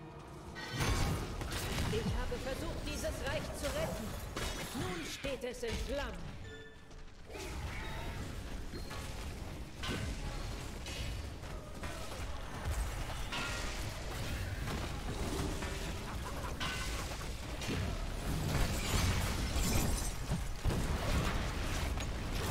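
Spells and weapons clash in a game battle, with bursts and impacts.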